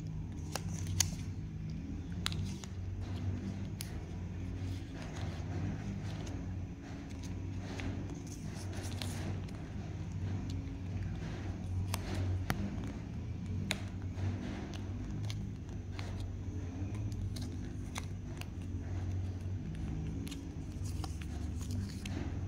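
Thin plastic crinkles and rustles as it is folded by hand.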